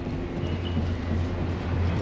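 Footsteps run on a metal walkway.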